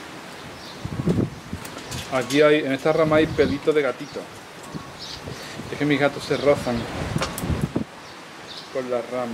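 Small pruning shears snip twigs.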